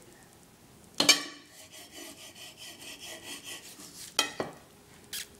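A knife scrapes and saws against a plate.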